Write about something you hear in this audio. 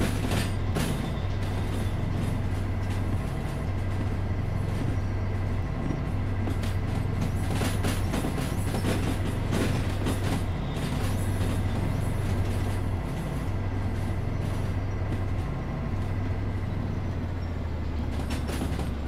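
A steam locomotive's wheels clatter on the rails.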